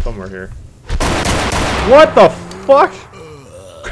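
Loud gunshots ring out.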